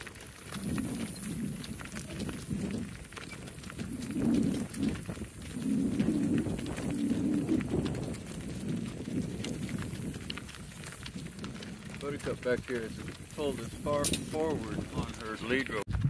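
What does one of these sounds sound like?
Donkey hooves clop steadily on a gravel road.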